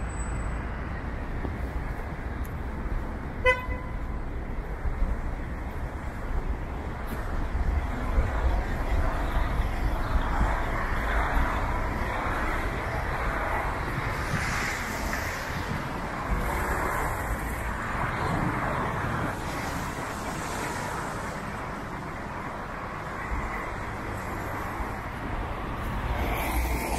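Distant city traffic rumbles steadily outdoors.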